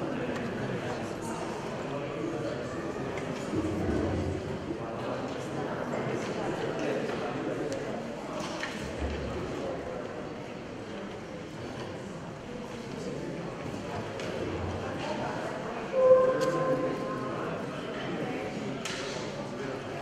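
A young woman sings into a microphone in a large echoing hall.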